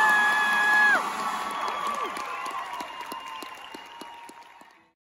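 Audience members cheer and whoop.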